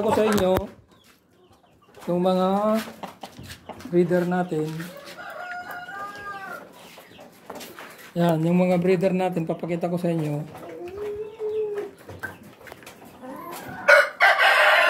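Chickens cluck and squawk loudly close by.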